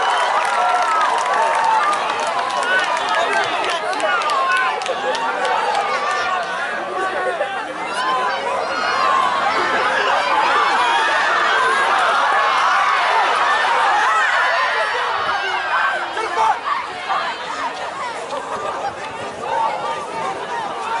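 A crowd of spectators outdoors shouts and cheers throughout.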